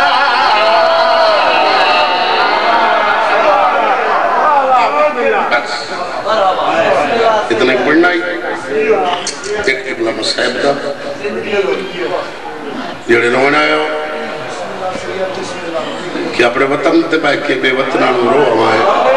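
A man chants loudly through a microphone, his voice echoing over loudspeakers.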